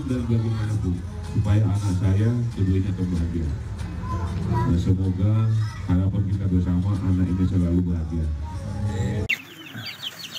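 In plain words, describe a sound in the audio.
A middle-aged man sings into a microphone through loudspeakers.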